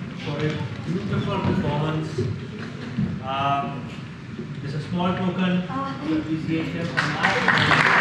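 Young performers speak loudly in a large echoing hall.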